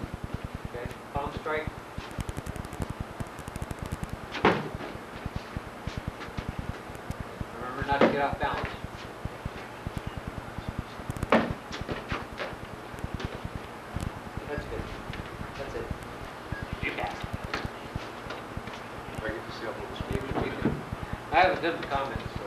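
A man talks calmly, instructing.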